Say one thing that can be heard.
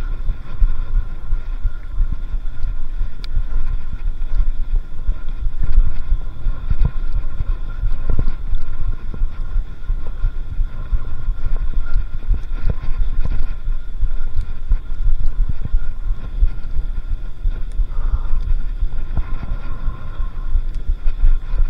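Bicycle tyres crunch and rumble over a sandy dirt track.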